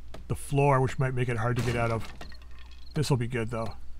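Wooden boards splinter and break apart.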